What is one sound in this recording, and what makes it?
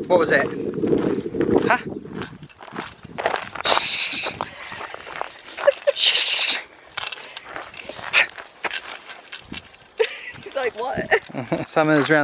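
A dog rustles through grass.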